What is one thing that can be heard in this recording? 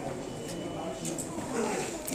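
Footsteps cross a hard floor nearby.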